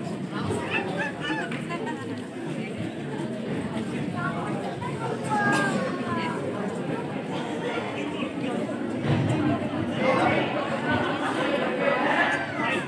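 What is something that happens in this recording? A crowd of people chatters loudly in an echoing hall.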